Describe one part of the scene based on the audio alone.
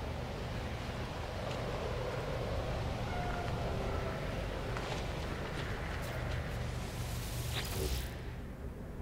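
Wind blows steadily across open grassland.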